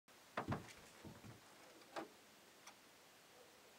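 Soft clicks and knocks come from handling a record player.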